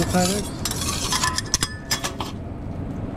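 A metal spatula clinks against a steel griddle.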